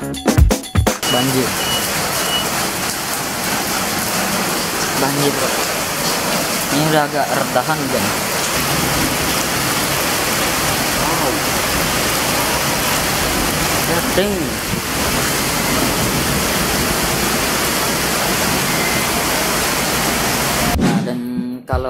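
Rain falls steadily and patters on wet surfaces.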